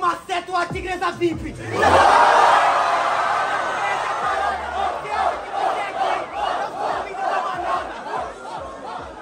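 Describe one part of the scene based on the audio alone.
A young man raps rapidly into a microphone, heard over loudspeakers.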